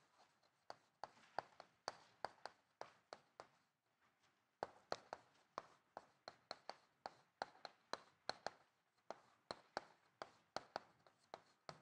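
Chalk taps and scratches on a board in quick, uneven strokes.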